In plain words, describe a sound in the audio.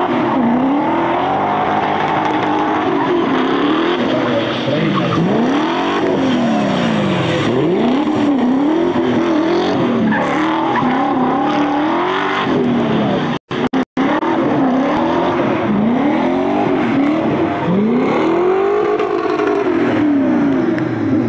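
A rally car engine revs hard, rising and falling as the car slides around the track.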